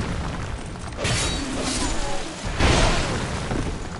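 A sword slashes through the air.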